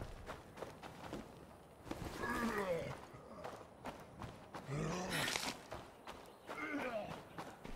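Footsteps crunch on dirt at a steady pace.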